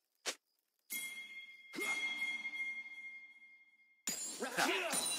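Game spell effects burst and ring out.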